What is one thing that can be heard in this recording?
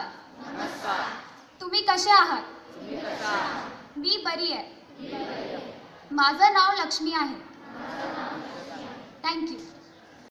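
A crowd of children chants together in reply.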